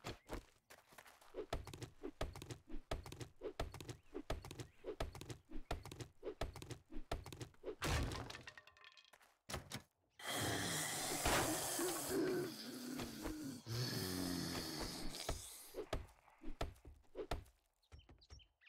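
An axe strikes wood with repeated sharp knocks.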